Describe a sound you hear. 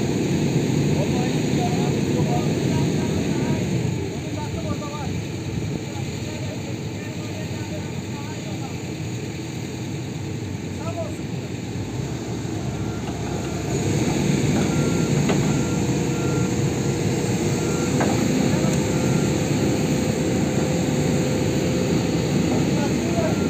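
A heavy diesel engine rumbles loudly close by.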